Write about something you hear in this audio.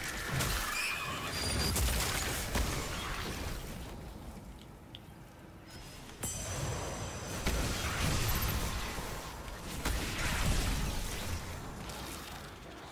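Gunfire from a video game rattles in quick bursts.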